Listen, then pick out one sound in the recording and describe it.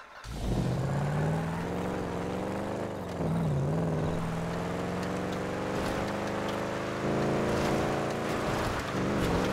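Tyres skid and scrape on loose dirt.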